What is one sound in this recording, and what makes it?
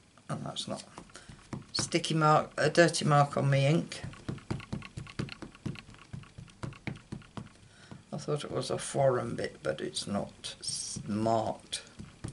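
An ink pad taps quickly and repeatedly on a plastic block.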